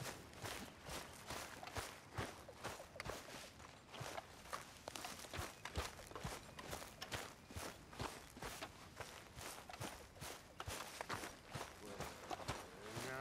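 Footsteps crunch steadily on grass and dry ground.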